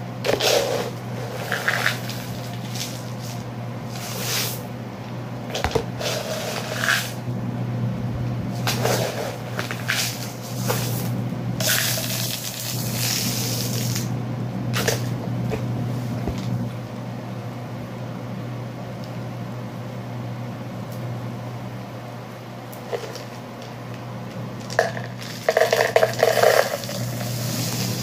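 Plastic objects clatter and knock against each other.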